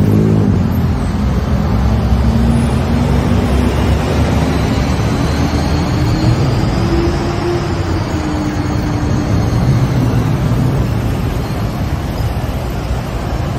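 City traffic rumbles steadily all around.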